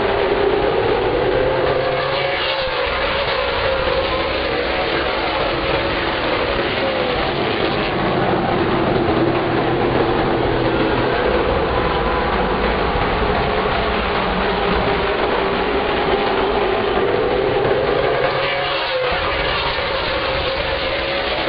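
A race car engine's pitch rises and falls as a car speeds past close by.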